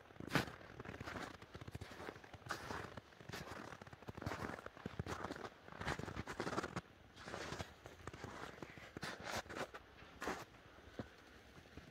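Snow crunches and rustles as a large cat rolls in it.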